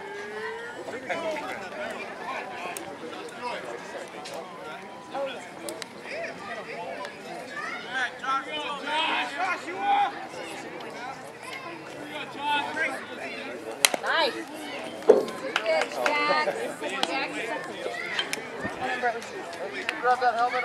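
Voices of men and boys chatter and call out outdoors.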